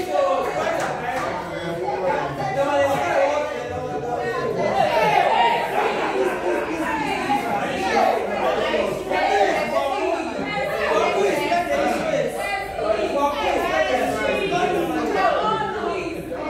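A young woman speaks with animation to a group, close by.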